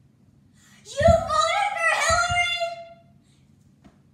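A young boy shouts loudly.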